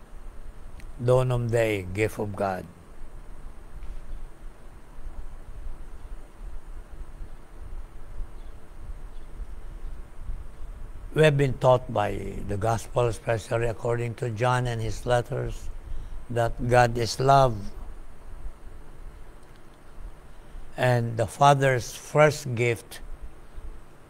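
An elderly man speaks calmly and slowly, close by, with long pauses.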